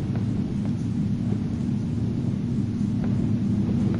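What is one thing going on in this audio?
Footsteps walk slowly across the ground.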